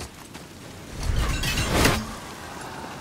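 An axe strikes something hard with a loud crack.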